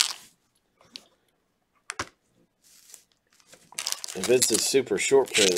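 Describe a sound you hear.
Foil packets crinkle and rustle as a hand picks them up.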